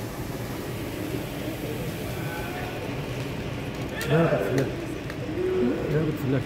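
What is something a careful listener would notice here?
Flares hiss and crackle steadily in a large echoing hall.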